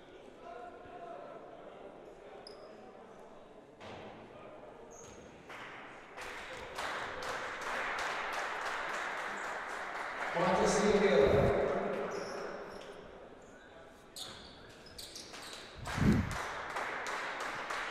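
Basketball shoes squeak on a wooden court.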